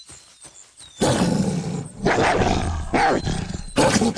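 A wolf snarls and fights with another beast.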